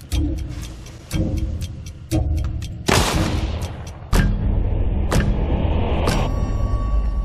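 Gunshots fire in quick succession, with a loud booming echo.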